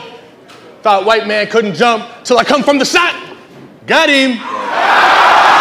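A man announces loudly through a microphone in a large hall.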